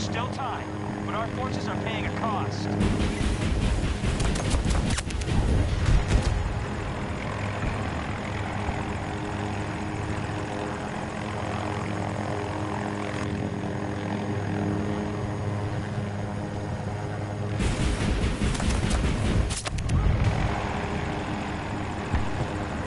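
A helicopter's rotor drones steadily throughout.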